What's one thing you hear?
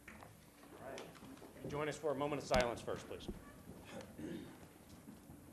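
A man speaks briefly through a microphone in a large room.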